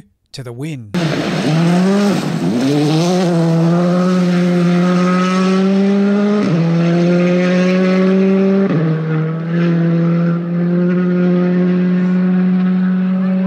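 A rally car engine roars at high revs, rising and dropping between gear changes.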